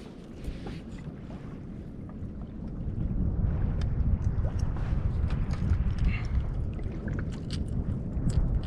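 Wind buffets the microphone outdoors on open water.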